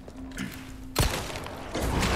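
A gunshot bangs and echoes.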